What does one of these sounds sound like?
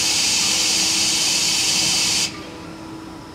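A loud spray hisses inside a machine, then cuts off abruptly.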